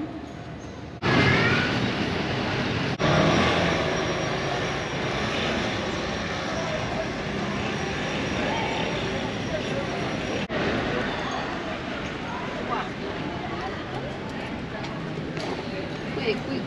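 A crowd of people chatters outdoors at a distance.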